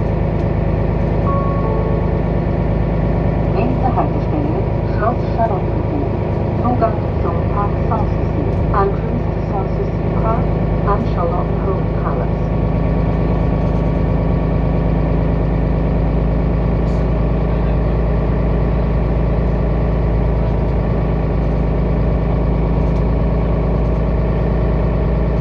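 A vehicle's engine hums steadily from inside as it drives along a road.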